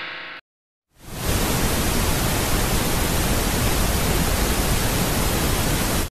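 Television static hisses steadily.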